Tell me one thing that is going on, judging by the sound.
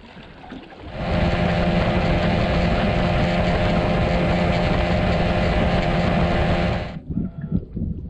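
An outboard motor roars steadily as a boat speeds across water.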